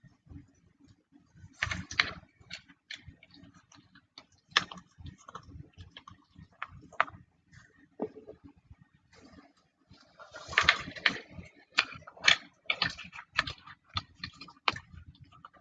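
A car tyre crushes foam and candy canes with cracking snaps.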